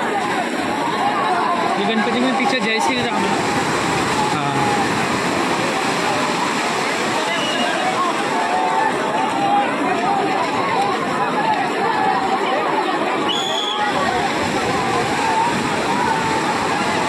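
A crowd of people chatter and call out outdoors at a distance.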